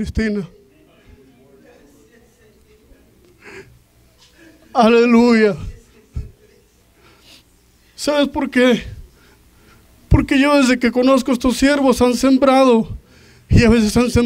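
A man speaks loudly through a microphone and loudspeakers, in short phrases with pauses.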